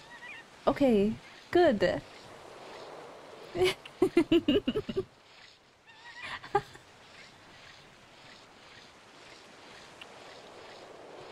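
Water sloshes softly as someone wades through it.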